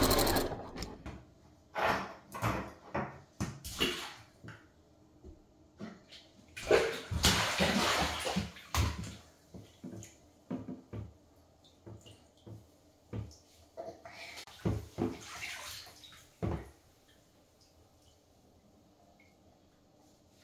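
Water splashes in a bathtub.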